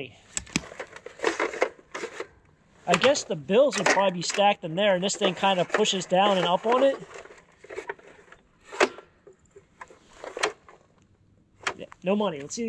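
A metal box clicks and clatters as it is handled.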